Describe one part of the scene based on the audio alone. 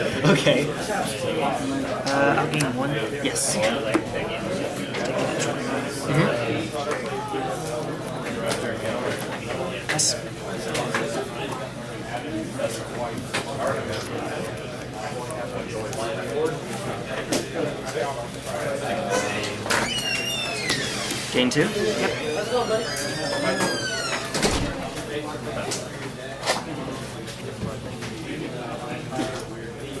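Playing cards slap and slide softly on a cloth mat.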